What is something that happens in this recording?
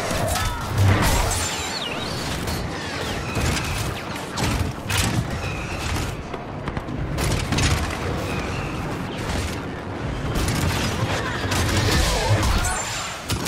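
Lightsabers hum and clash in a loud fight.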